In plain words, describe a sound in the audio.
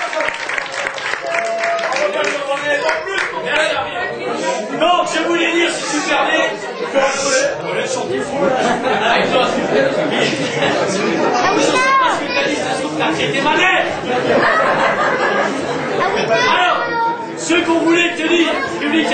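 A group of men sing together loudly.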